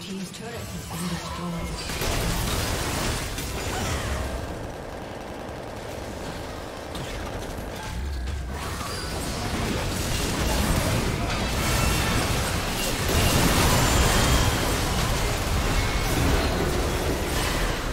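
Magic spells crackle and burst in a busy fantasy battle.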